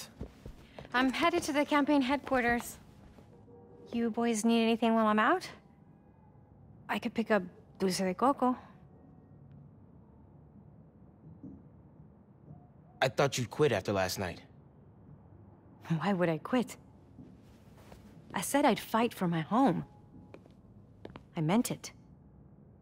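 A woman speaks calmly and warmly.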